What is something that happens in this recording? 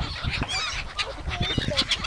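A small child babbles happily up close.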